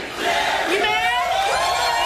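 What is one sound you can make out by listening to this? A young woman screams and shouts angrily.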